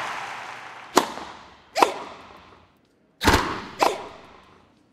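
A tennis ball is struck with a racket in sharp pops.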